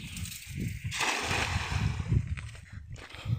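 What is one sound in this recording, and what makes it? A cast net splashes down onto water.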